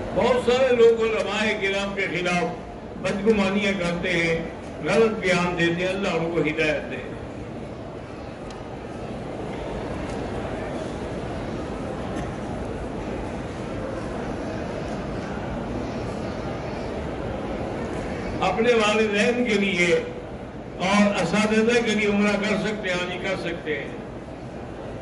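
An elderly man speaks slowly and solemnly into a microphone, heard through loudspeakers in a large echoing hall.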